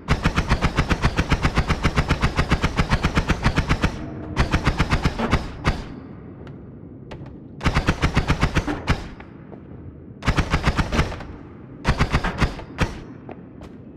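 A game weapon fires rapid bursts of zapping shots.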